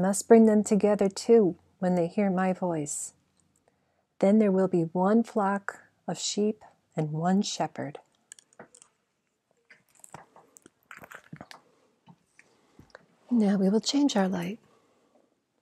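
A young woman reads a story aloud calmly, close by.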